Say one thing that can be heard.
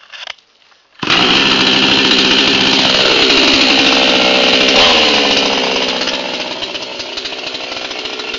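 A chainsaw engine starts and roars loudly, then settles to a lower idle.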